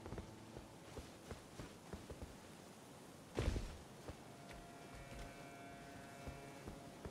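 Footsteps tread on stone at a steady pace.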